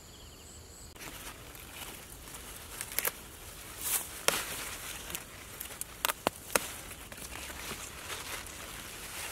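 Leaves rustle and crackle as a hand pushes through plants close by.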